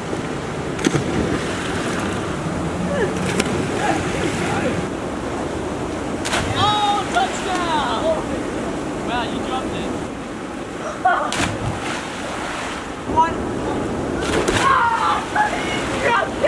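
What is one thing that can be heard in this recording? Water splashes loudly as a body hits it.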